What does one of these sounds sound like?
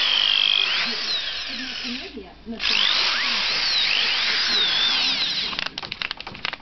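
An electric power tool whirs loudly, its pitch wavering.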